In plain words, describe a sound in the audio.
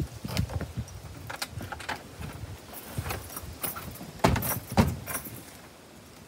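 A door latch rattles and clicks.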